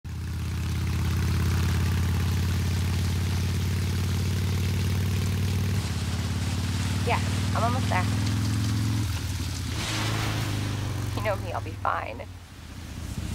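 Heavy rain pours down.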